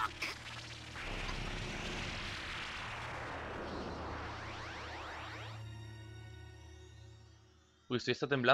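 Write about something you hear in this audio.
A deep rumbling roar swells and then fades.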